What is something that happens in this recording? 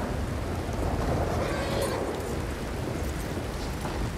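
Horse hooves thud on soft dirt.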